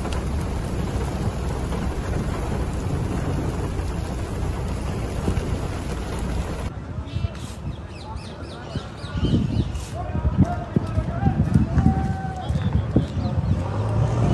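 Strong wind blows and gusts through trees.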